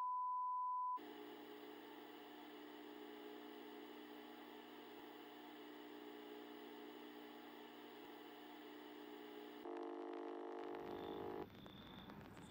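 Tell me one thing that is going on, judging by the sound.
A videotape plays with a low steady hum.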